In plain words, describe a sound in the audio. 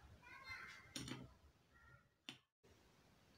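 A glass lid clinks against a glass bowl.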